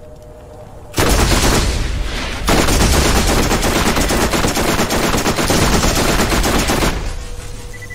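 An energy gun fires in a loud, crackling burst.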